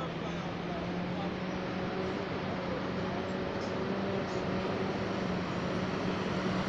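A waterfall roars far below.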